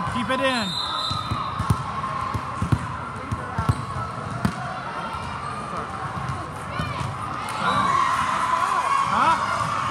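Young girls shout and call to each other on court.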